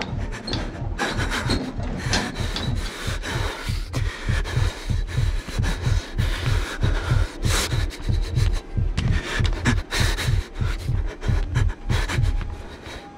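Heavy footsteps thud steadily on a wooden floor.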